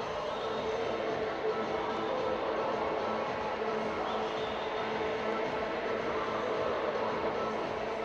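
Young women call out to one another in a large echoing hall.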